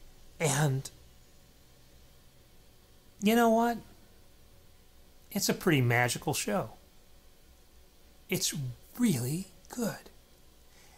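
A middle-aged man speaks close into a microphone, in short animated bursts.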